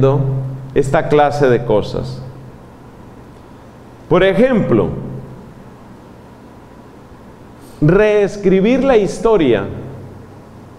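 A middle-aged man speaks calmly into a microphone in an echoing hall, pausing between phrases.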